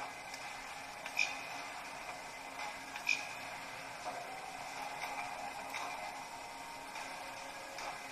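Buttons on a small handheld computer click as thumbs press them.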